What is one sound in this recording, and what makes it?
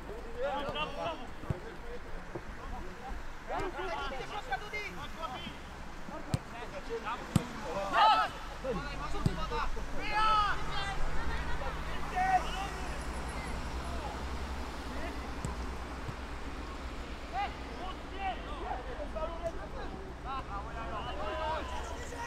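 Young men shout to each other from a distance across an open pitch.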